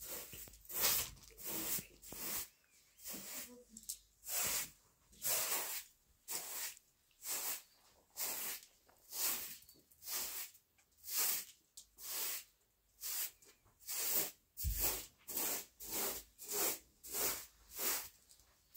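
A broom sweeps a carpet in rhythmic, brushing strokes.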